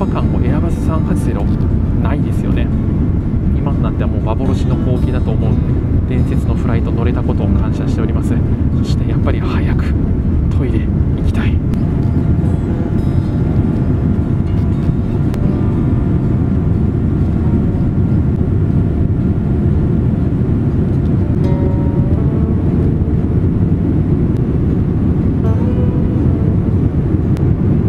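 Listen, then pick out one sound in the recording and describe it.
A jet engine roars steadily from inside an airliner cabin.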